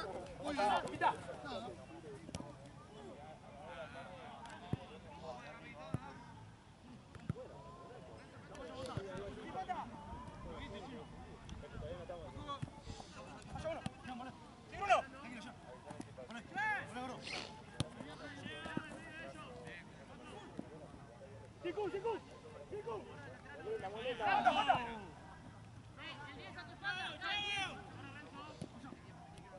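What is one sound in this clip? Young men shout and call out to each other across an open outdoor pitch.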